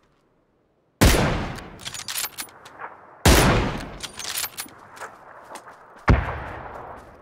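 Loud gunshots ring out a few times, each followed by a short echo.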